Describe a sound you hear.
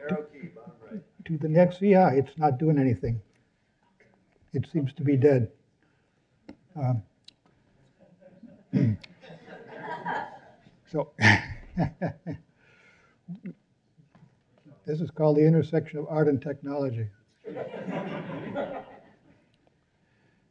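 An elderly man speaks into a microphone in a large hall.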